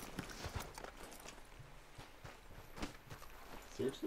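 Footsteps crunch on a dirt path.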